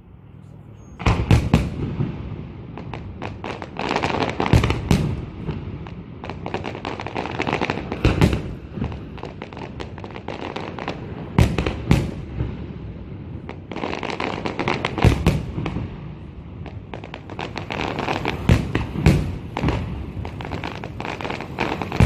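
Fireworks crackle and pop in rapid bursts.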